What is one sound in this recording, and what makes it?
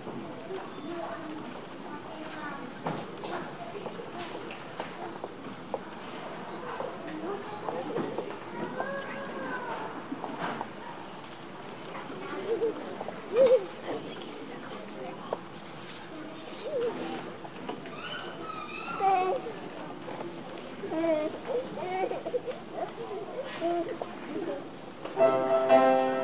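Children chatter and murmur quietly in a large echoing hall.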